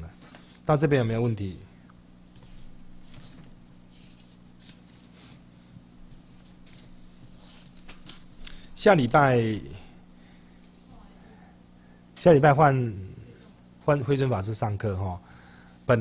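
A middle-aged man speaks calmly into a microphone in short bursts with pauses between.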